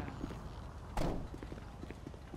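A truck door slams shut.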